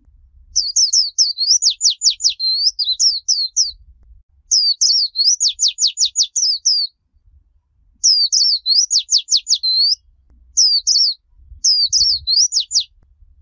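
A small bird sings in quick, high, twittering bursts close by.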